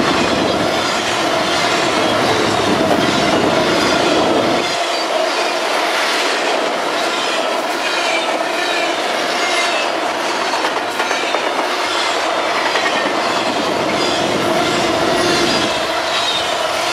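A long freight train rumbles past close by, its wheels clattering on the rails.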